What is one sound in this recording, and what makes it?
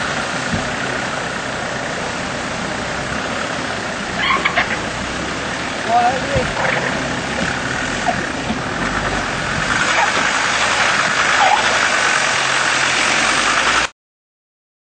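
An engine revs as a vehicle climbs a rough track.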